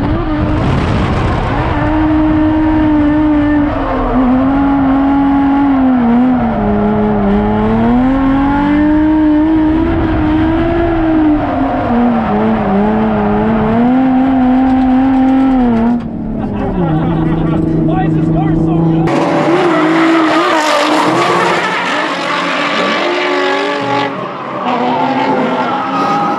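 A car engine revs hard, rising and falling in pitch.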